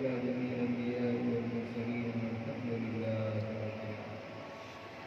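A man recites a prayer through a microphone and loudspeaker.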